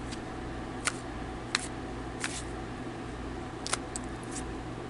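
A deck of cards is shuffled by hand.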